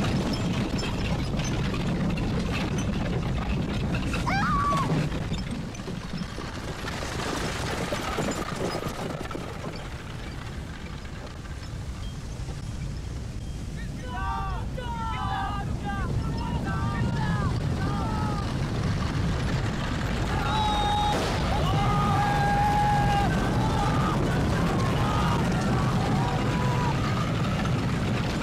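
Horses' hooves pound as they gallop.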